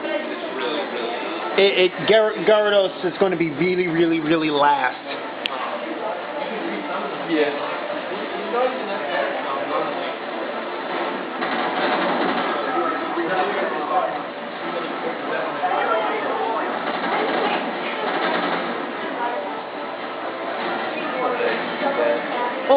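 Video game battle music and effects play from a television speaker.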